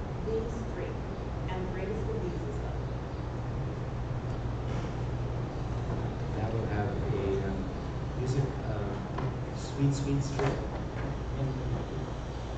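A man speaks calmly, reading out in an echoing room.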